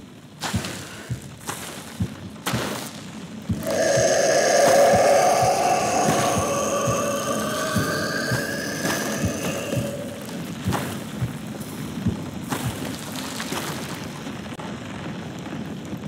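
Heavy footsteps thud slowly and steadily nearby.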